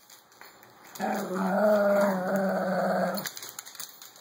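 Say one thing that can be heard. A small dog growls playfully.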